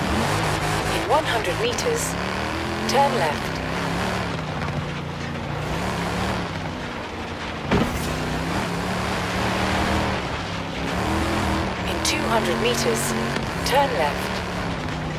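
Tyres squeal on the road through bends.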